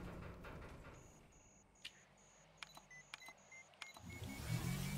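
A device beeps in short, evenly spaced pulses.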